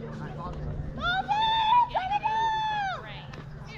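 Children shout loudly across an open field.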